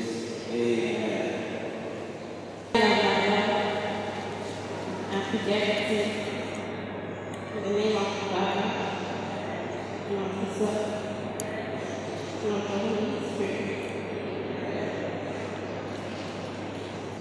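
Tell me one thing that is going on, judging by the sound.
A young woman speaks softly and slowly into a microphone, heard through loudspeakers in an echoing room.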